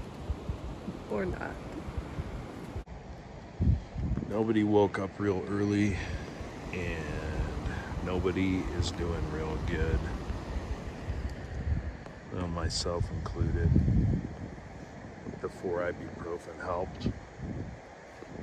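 A man talks casually close by, outdoors.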